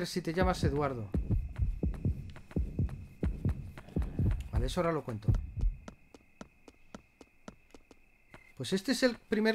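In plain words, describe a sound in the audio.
Footsteps tap at a steady pace.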